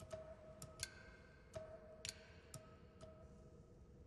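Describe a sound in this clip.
Soft electronic menu chimes ring several times in quick succession.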